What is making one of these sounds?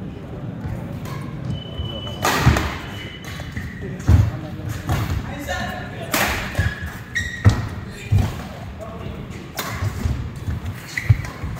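Players stomp and thud on the court floor.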